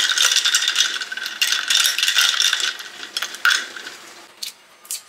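A straw stirs ice cubes, rattling and clinking against a glass jar.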